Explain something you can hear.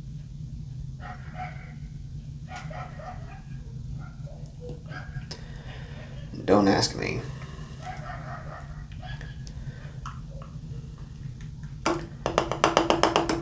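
Beer pours and fizzes into a glass.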